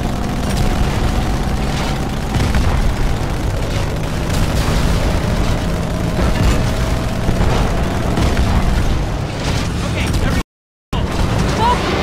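Gunfire and explosions crack and boom ahead.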